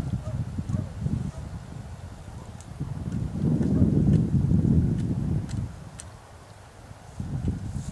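A fishing reel clicks and whirs as line is wound in.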